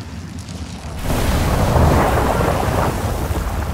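Stone rubble crashes and crumbles in a rush of noise.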